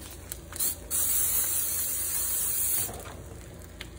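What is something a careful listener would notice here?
Cooking spray hisses from a can.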